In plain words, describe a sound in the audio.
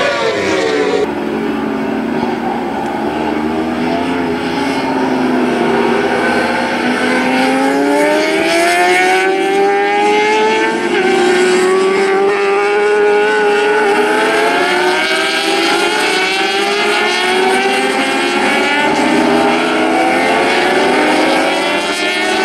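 Several motorcycle engines drone together from a distance as a group of bikes rounds a bend.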